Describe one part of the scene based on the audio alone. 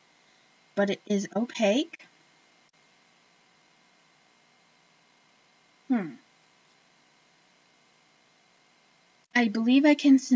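A woman speaks close by, in short bursts.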